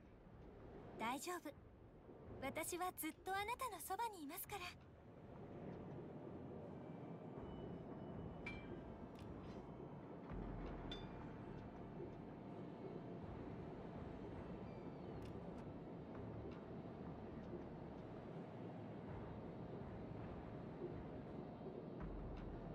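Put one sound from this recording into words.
Water rushes and splashes against a ship's bow.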